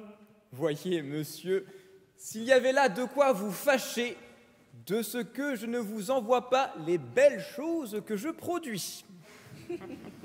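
A mixed choir sings in a large echoing hall.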